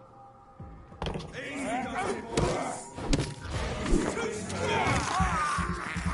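Blows and clashes of a fight thud and clang.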